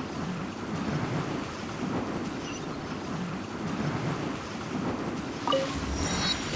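A gust of wind whooshes and rustles leaves continuously.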